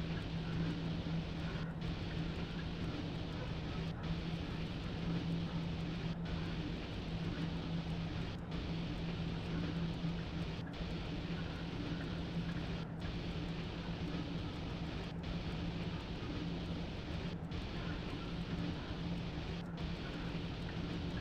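Train wheels rumble along the rails.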